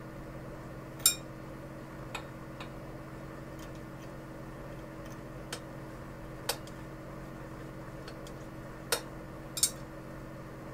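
Metal parts click and clack sharply as they are fitted together.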